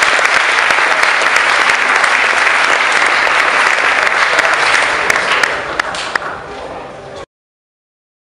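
An audience applauds and cheers loudly in a large echoing hall, then the applause fades.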